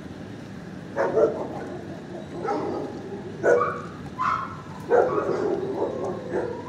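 A dog whimpers and grumbles close by.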